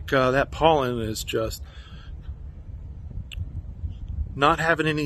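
A man speaks calmly close to a microphone, pausing between phrases.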